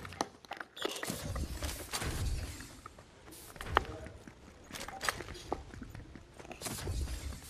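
Quick footsteps patter on stone.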